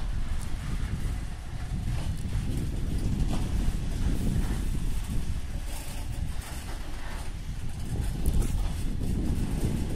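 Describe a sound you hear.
A long freight train rumbles steadily past on the rails.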